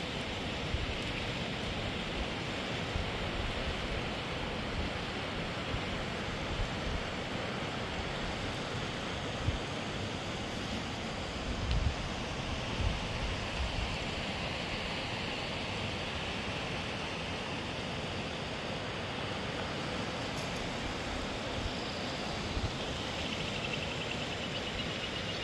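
A rocky mountain stream rushes in the distance.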